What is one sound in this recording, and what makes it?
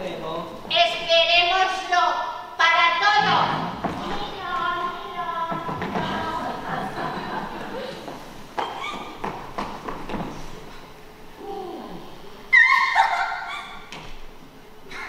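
A woman speaks expressively on a stage in a large hall.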